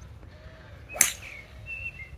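A golf club hits a ball cleanly with a crisp click.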